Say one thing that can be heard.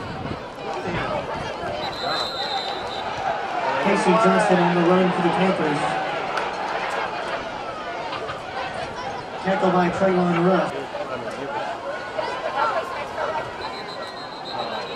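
A large crowd cheers and shouts in an open stadium.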